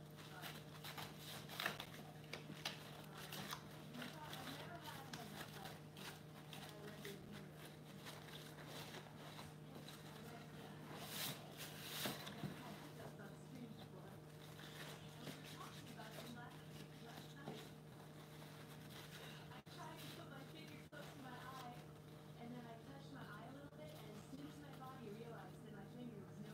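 Cardboard scrapes and rustles as it is handled.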